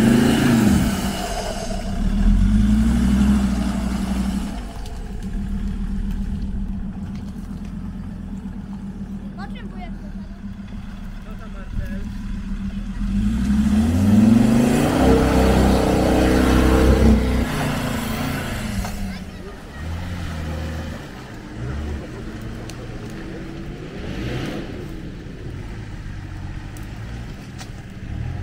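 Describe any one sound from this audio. An off-road engine revs hard and labours, rising and falling in pitch.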